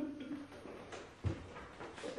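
Footsteps thud across a hard floor.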